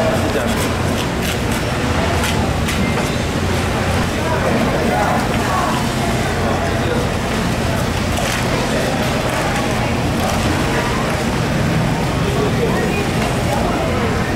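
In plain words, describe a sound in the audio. A large knife chops and scrapes through fish flesh.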